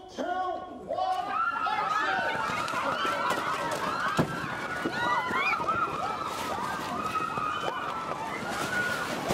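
A crowd shouts and screams outdoors.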